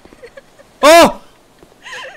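A young man shouts loudly in fright into a close microphone.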